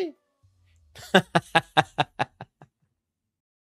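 A man laughs in short bursts, close to a microphone.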